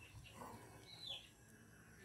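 A spoon stirs in a pot of boiling water.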